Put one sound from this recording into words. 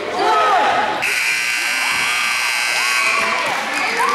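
A buzzer sounds steadily.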